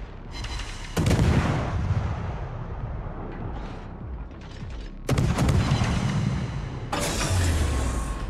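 Heavy naval guns fire in loud booming salvos that rumble away.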